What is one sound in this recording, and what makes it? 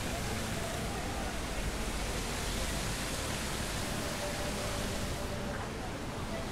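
Fountain water splashes steadily outdoors.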